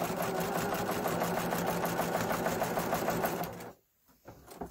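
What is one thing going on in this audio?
A sewing machine stitches rapidly with a steady whirring hum.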